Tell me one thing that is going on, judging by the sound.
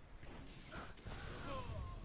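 An explosion bursts with a roar.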